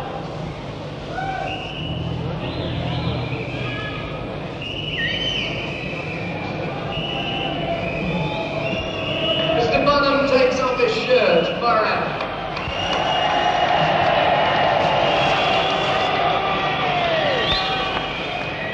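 A man sings loudly into a microphone.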